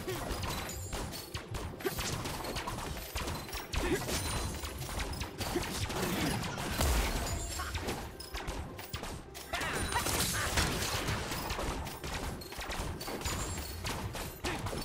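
Game weapons clash and strike in quick bursts.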